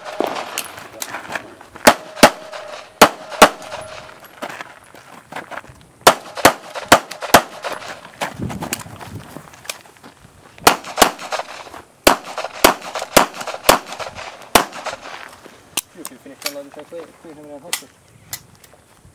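Pistol shots ring out in quick bursts outdoors.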